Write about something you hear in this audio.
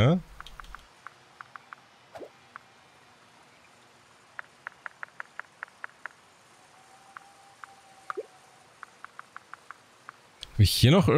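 Soft menu clicks tick quickly, one after another.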